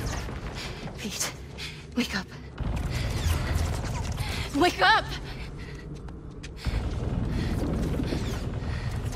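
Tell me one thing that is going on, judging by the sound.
A young woman speaks urgently and breathlessly.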